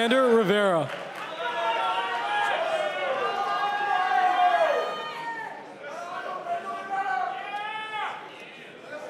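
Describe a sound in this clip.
A large crowd cheers and shouts.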